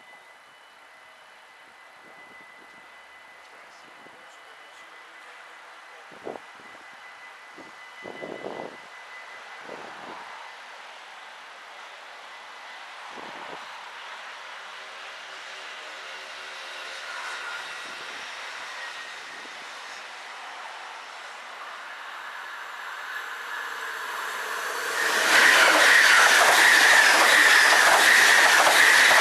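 A level crossing signal rings steadily.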